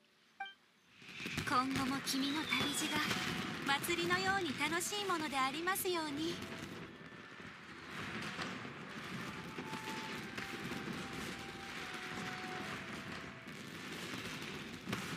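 Fireworks whistle, pop and crackle overhead.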